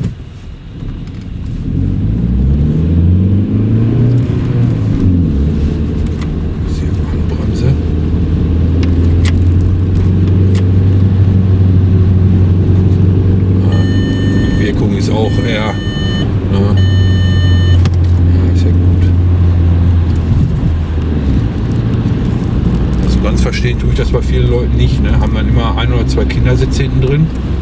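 A car engine hums steadily from inside the car, rising in pitch as it speeds up.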